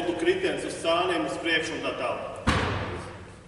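A man speaks with animation in a large echoing hall.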